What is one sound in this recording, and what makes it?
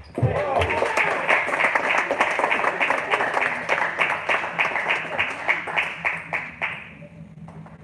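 Table tennis balls click rapidly against paddles and tables in an echoing hall.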